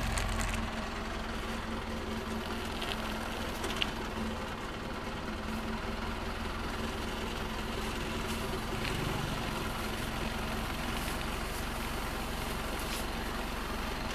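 A diesel engine idles with a steady low rumble.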